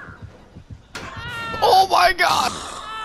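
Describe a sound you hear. A young man screams in terror.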